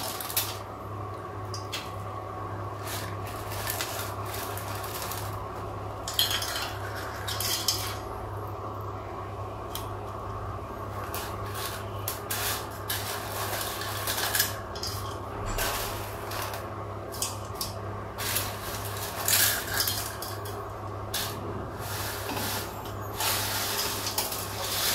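Noodles drop into a pot of water with soft splashes and patters.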